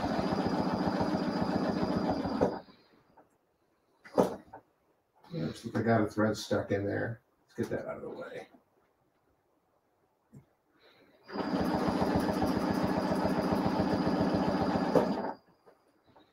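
A sewing machine stitches rapidly with a steady whirring hum.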